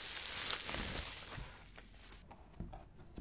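Bubble wrap crinkles and crackles close up.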